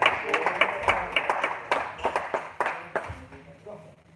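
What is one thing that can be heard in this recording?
A table tennis ball clicks rapidly back and forth off paddles and a table in an echoing hall.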